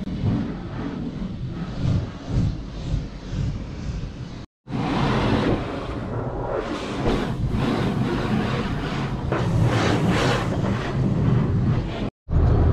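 A pressure washer sprays water hard against a car's windows, heard from inside the car.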